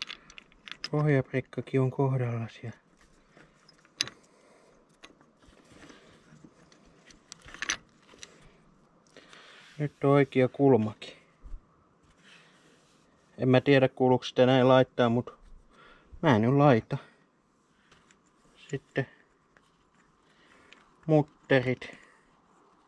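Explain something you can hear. A man speaks calmly close by, explaining.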